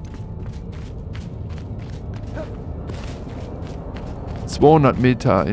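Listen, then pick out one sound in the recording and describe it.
Footsteps tread steadily over soft ground.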